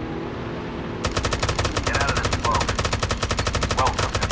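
A machine gun fires in rapid, steady bursts.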